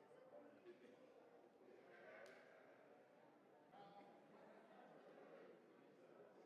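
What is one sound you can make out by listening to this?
A crowd of men and women murmurs and chatters quietly in an echoing hall.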